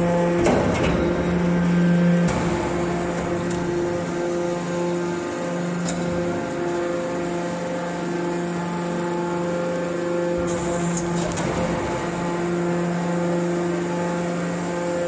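A hydraulic baler hums steadily with a droning pump.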